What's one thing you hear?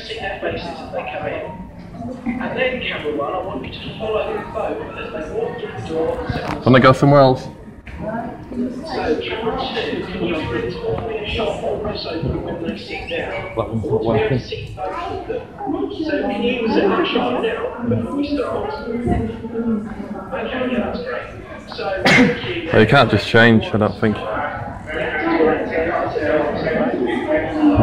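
A young man speaks cheerfully, heard through a television loudspeaker.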